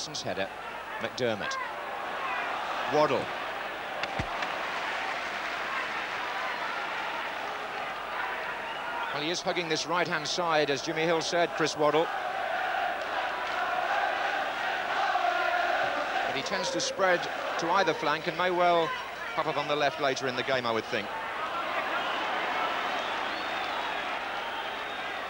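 A large stadium crowd roars and murmurs steadily outdoors.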